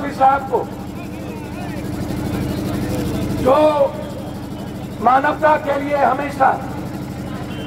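A middle-aged man shouts forcefully into a microphone over a loudspeaker outdoors.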